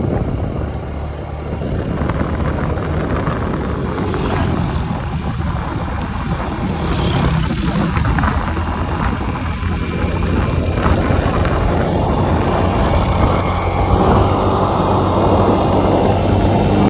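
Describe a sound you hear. A vehicle's tyres roll steadily along a paved road.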